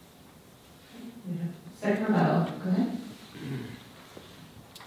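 A woman speaks into a microphone in a large room, heard through loudspeakers.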